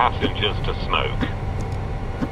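A man speaks briefly and close to a microphone.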